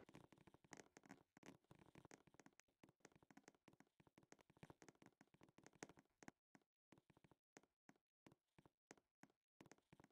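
A basketball bounces steadily on a hard court floor.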